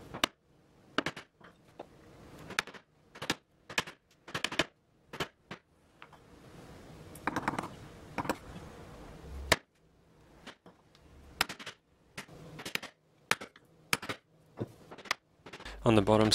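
A chisel clicks and taps sharply against wood.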